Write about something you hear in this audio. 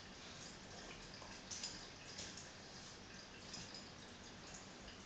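Two dogs scuffle playfully on a rug.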